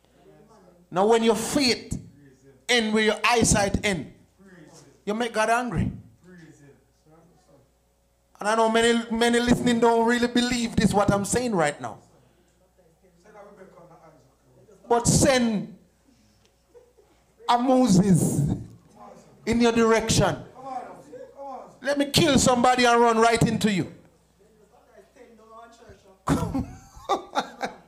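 A man preaches with animation into a microphone, his voice echoing in a large hall.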